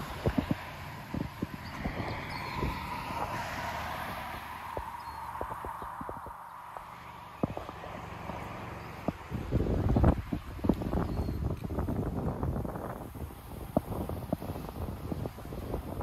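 Wind blows outdoors, rumbling at times.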